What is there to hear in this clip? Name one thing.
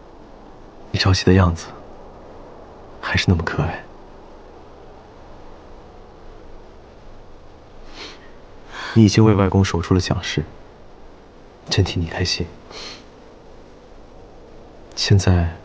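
A young man speaks calmly and gently, close by.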